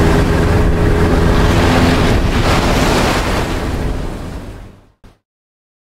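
Rough sea waves surge and crash.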